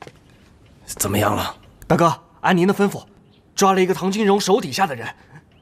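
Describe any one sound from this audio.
A young man speaks eagerly and quickly.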